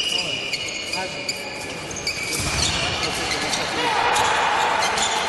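Sports shoes squeak sharply on a hard floor.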